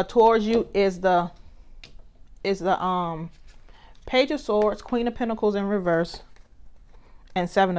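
Playing cards slide and flap softly as they are picked up.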